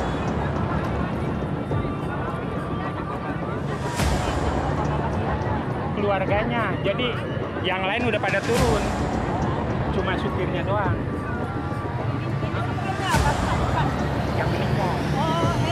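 A crowd of men and women talk at once nearby.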